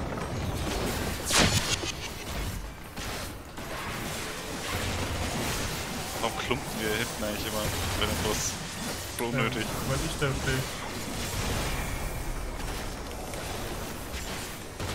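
Magic blasts and explosions crackle and boom in a battle.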